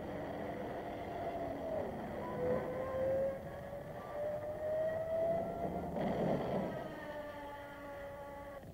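A propeller plane's engine drones and whines in a dive, rising and falling in pitch.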